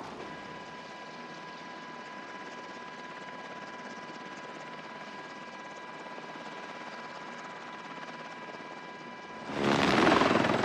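A helicopter engine hums steadily from inside the cabin.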